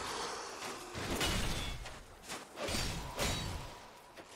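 Flames whoosh and crackle.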